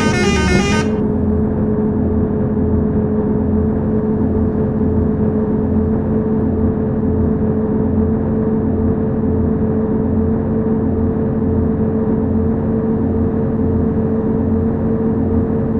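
A bus engine drones steadily, its pitch creeping slowly upward as it speeds up.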